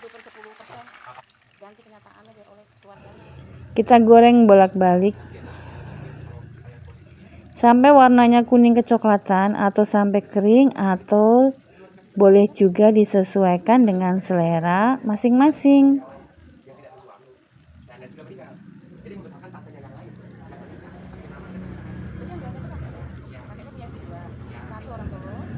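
Hot oil sizzles and bubbles steadily.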